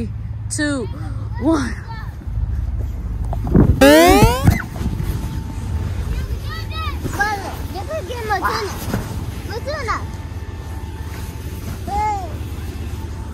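A young child squeals and chatters playfully nearby.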